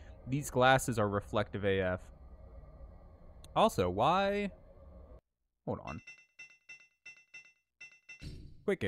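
A man speaks into a close microphone with animation.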